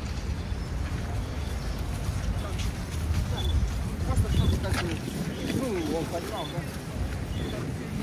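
Footsteps of many people crunch on snowy pavement.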